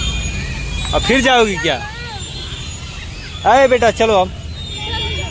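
A young girl squeals and shouts excitedly outdoors.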